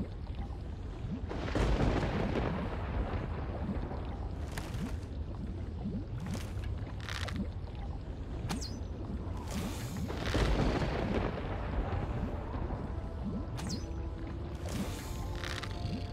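Lava bubbles and rumbles with a steady low roar.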